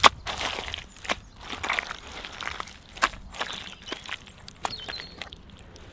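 Gloved hands squelch and squeeze wet mud and straw.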